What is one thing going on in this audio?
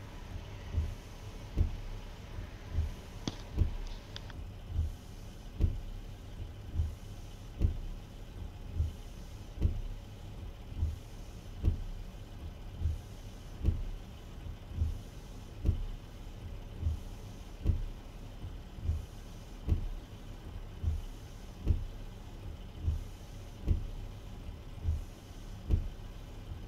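Windshield wipers thump back and forth in a steady rhythm.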